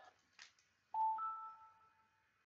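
A short electronic menu chime rings out and fades.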